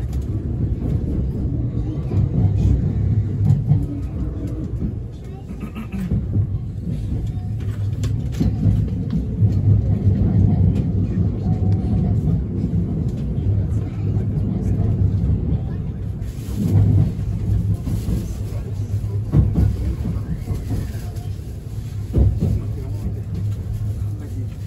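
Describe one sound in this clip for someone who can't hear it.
A train rumbles steadily as it rolls into a station.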